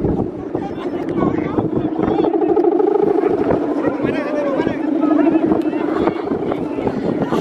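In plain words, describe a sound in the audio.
A kite hums with a steady, droning buzz overhead.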